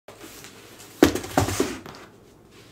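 Cardboard boxes thump down onto a wooden surface.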